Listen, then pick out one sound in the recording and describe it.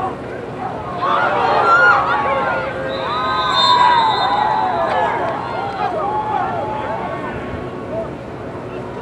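Children shout and cheer excitedly in the distance outdoors.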